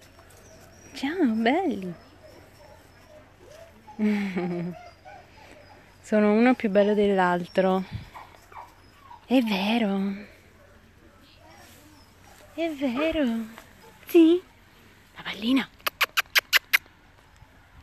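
A young woman talks to dogs close by in a high, cooing voice.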